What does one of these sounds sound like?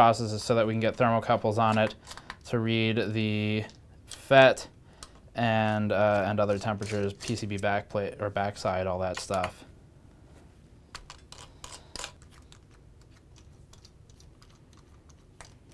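A small screwdriver turns screws with faint clicks.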